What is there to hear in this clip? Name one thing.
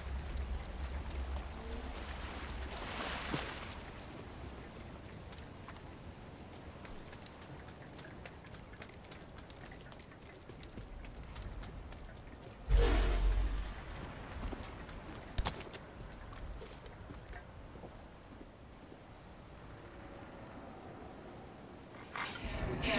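Quick footsteps patter over the ground.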